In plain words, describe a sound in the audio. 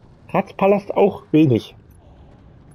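A man speaks in a low, firm voice.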